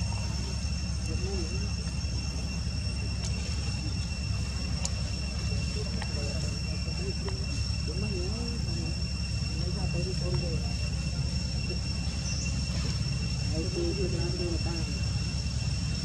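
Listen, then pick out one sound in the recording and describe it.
A baby monkey squeaks softly, again and again.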